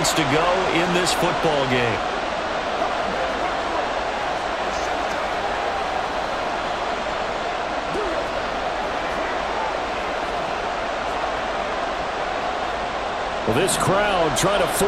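A large stadium crowd cheers and murmurs steadily.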